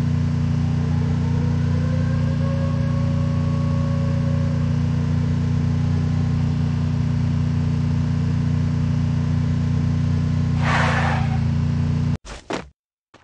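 A car engine hums steadily as a vehicle drives along a road.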